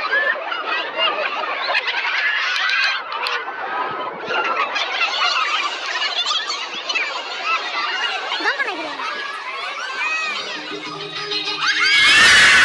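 A large crowd of young people cheers and shrieks excitedly nearby.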